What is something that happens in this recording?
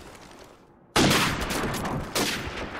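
An explosion booms and rumbles nearby.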